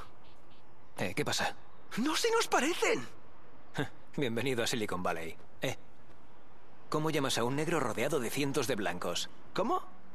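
A second young man talks with animation up close.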